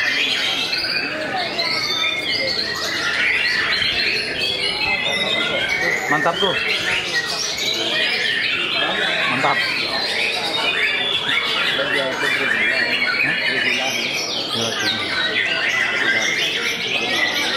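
A songbird sings loud, fast, varied chirps and warbles close by.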